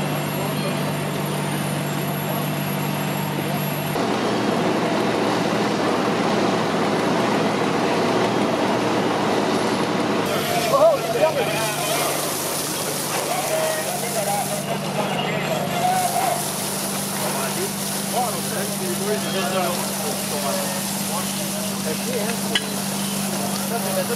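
A fire truck engine idles with a steady low hum.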